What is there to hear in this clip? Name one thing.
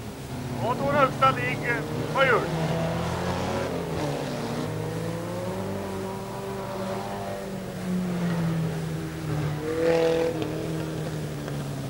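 Race car engines roar and rev in the distance.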